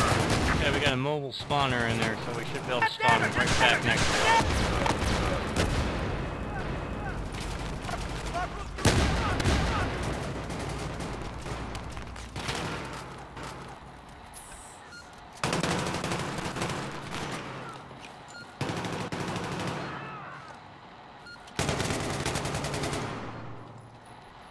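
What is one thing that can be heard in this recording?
Loud explosions boom and rumble, one after another.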